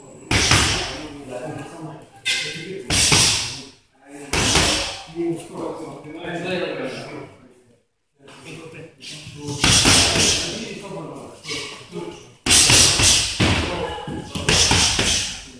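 Boxing gloves thud against each other in quick blows.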